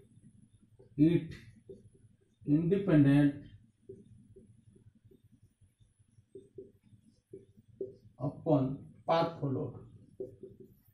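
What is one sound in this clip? A young man speaks calmly nearby, in short bursts.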